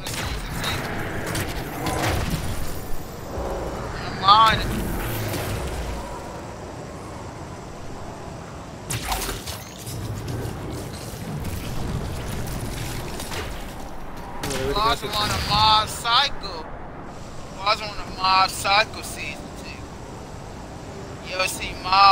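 Game sound effects whoosh and rumble.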